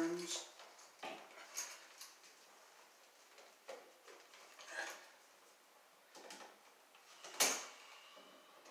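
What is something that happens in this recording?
A screwdriver clicks and scrapes against a metal wall outlet.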